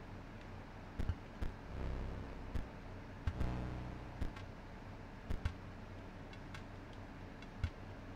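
Soft menu clicks sound as a cursor picks items in a game menu.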